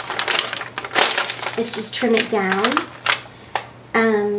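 A large sheet of paper rustles and crinkles.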